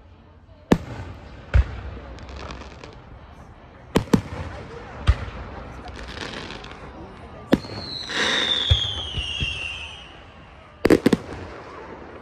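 Aerial firework shells burst with booming bangs that echo outdoors.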